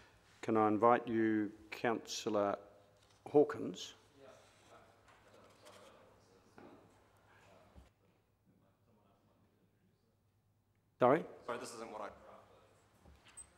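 A middle-aged man speaks calmly into a microphone in a large, echoing room.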